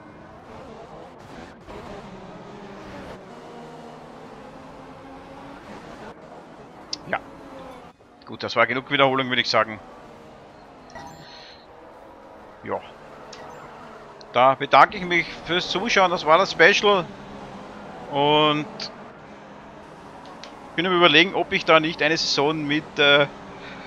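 Racing car engines roar past at high speed.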